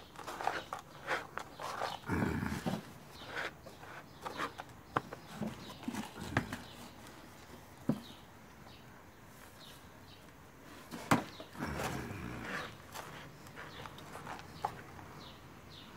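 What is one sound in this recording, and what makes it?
A gloved hand rustles and scrapes through dry potting soil.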